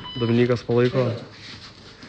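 Boxing gloves thud against pads.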